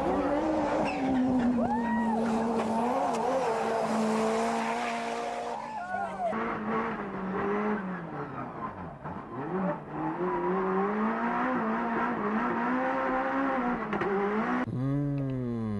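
A race car engine roars at high revs and shifts gears.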